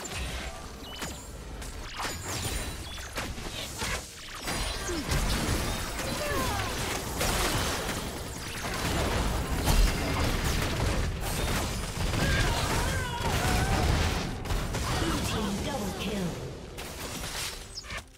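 Spell effects and weapon hits clash rapidly in a game fight.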